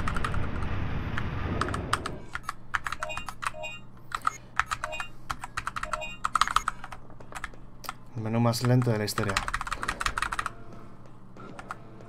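Keyboard keys click and clatter quickly.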